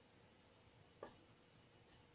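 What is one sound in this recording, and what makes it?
A small object is set down on a wooden board with a light knock.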